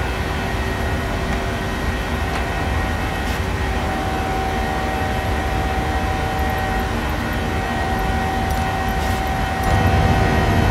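Jet engines drone steadily, muffled inside a cockpit.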